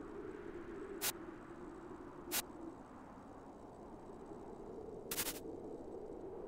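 Short electronic game blips sound now and then.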